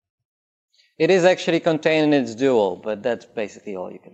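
A man lectures with animation through a microphone.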